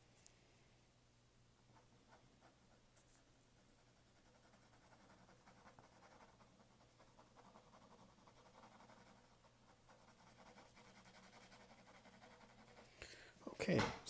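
A pencil scratches and rustles across paper in quick strokes.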